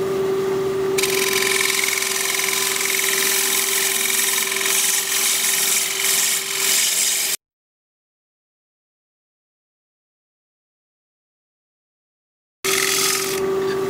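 A chisel shaves wood on a spinning lathe with a rough, hissing scrape.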